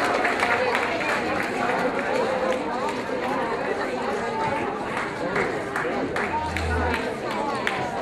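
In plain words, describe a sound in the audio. People clap their hands in quick bursts.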